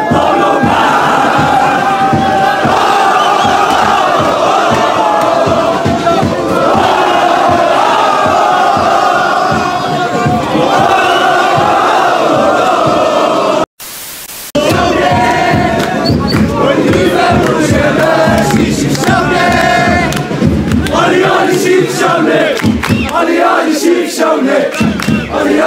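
A large crowd of young men chants and sings loudly outdoors.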